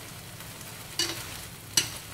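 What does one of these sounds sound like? Wooden chopsticks knock against a metal pan.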